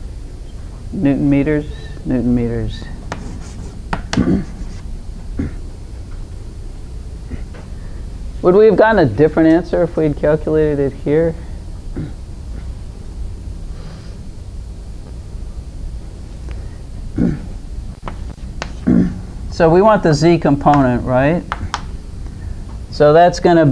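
An elderly woman speaks calmly and clearly, lecturing.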